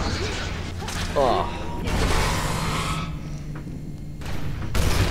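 Electronic zaps and blasts sound from a video game battle.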